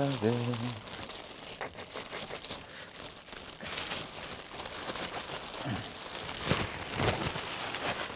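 Plastic sheeting crinkles and rustles.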